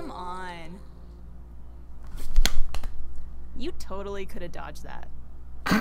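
A young woman exclaims and laughs excitedly, close to a microphone.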